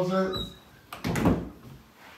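A door closes with a soft thud.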